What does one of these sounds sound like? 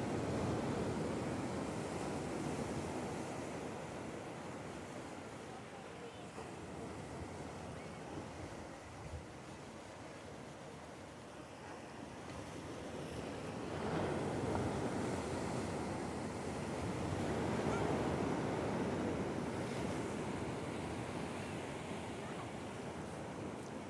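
Waves break and wash over the shore nearby, swelling and easing.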